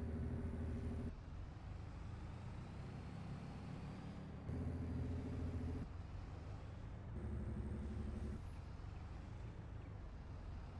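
A heavy truck engine rumbles and drones, now and then growing louder.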